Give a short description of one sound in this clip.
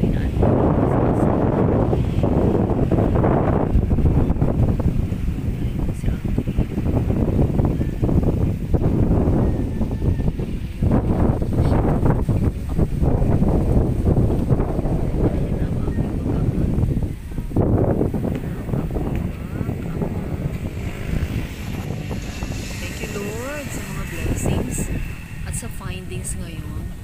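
Wind rumbles steadily over the microphone outdoors.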